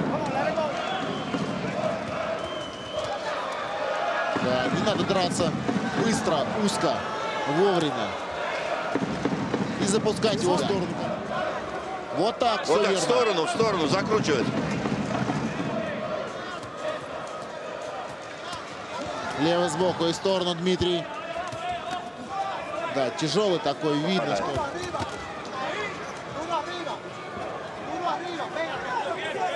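A large crowd cheers and murmurs in a big hall.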